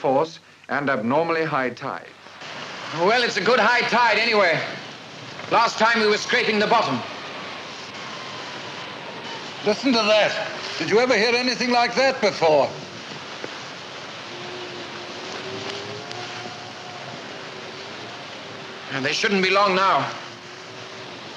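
Men talk in low, tense voices close by.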